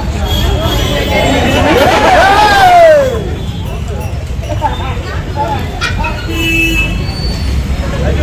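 A crowd of men shouts and cheers outdoors.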